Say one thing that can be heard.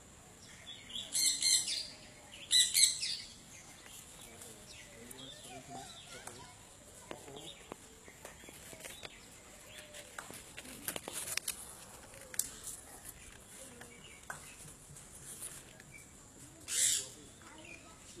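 Parrots squawk loudly nearby.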